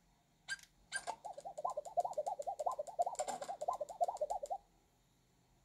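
A quick run of bouncy chiming notes plays from a handheld game console's speaker.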